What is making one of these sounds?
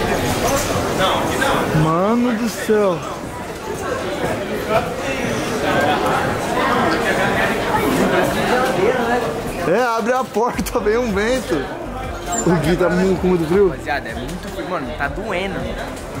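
A young man talks with animation close by.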